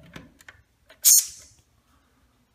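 An aerosol can sprays a short hiss.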